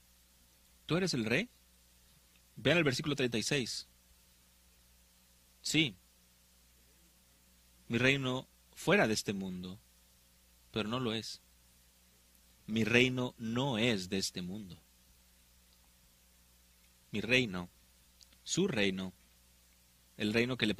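An elderly man preaches with emphasis through a microphone, in short bursts with pauses.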